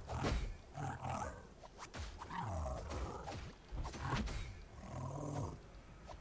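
Blades slash and clang in a close fight.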